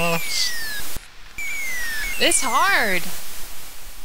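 Electronic game tones chirp and slide downward in quick beeps.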